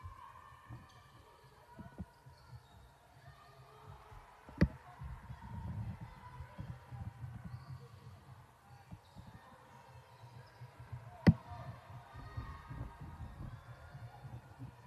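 A basketball bounces on a hard court floor.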